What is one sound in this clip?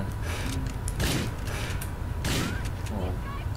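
Gunshots ring out sharply a few times.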